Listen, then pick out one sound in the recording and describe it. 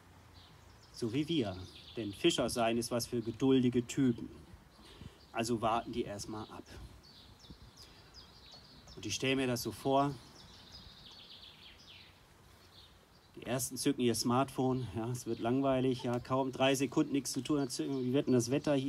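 A man speaks calmly into a microphone, with pauses.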